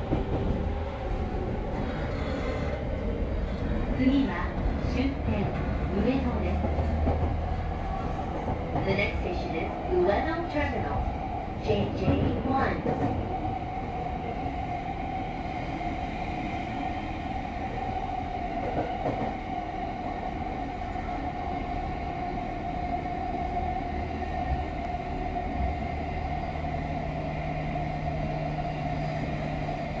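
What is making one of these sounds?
A train rumbles and hums steadily along its tracks, heard from inside a carriage.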